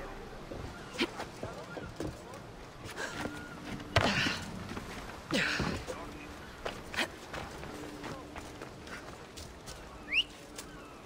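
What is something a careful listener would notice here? Footsteps thud on stone as a figure runs and climbs.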